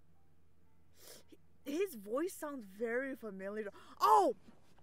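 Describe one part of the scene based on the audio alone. A young person speaks expressively into a close microphone.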